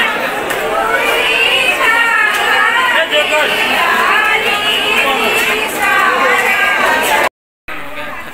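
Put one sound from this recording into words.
A group of women sing together.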